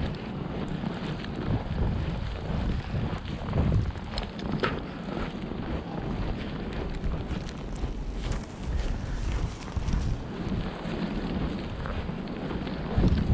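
Strong wind gusts and roars into a microphone outdoors.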